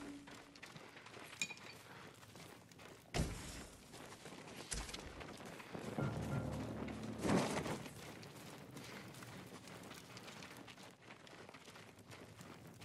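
Footsteps thud softly on a floor.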